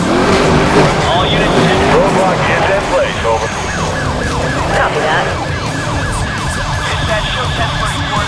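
A police siren wails close by.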